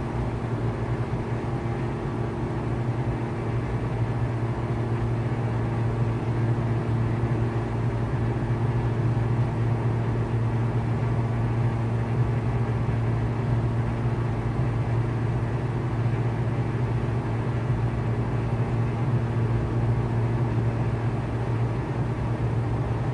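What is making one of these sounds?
A small propeller plane's engine drones steadily throughout.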